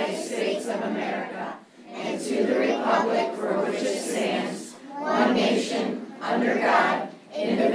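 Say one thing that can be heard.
A group of men and women recite together in unison.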